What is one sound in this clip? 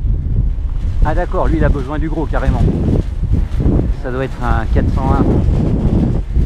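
An older man talks calmly nearby.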